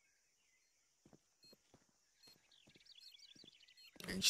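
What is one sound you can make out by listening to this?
Footsteps thud softly on stone.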